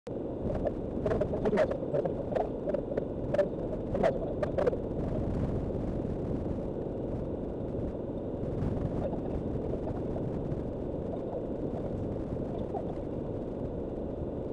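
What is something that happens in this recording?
Gravel and small stones crackle and ping under the tyres.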